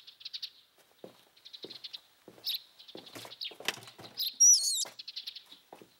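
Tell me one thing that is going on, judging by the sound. Footsteps walk over pavement outdoors.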